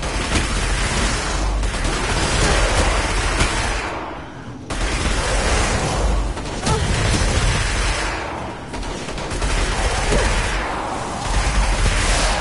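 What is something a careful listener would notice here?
Gunfire rattles rapidly and loudly.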